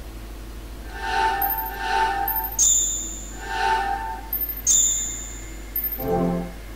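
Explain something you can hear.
Game menu sounds beep and chime.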